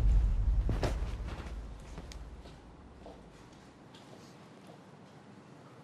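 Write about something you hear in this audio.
A woman's heels click on a hard floor as she walks.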